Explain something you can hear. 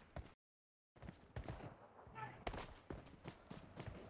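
Footsteps crunch softly on grass and dirt.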